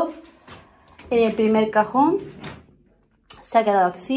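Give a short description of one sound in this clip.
A drawer slides open.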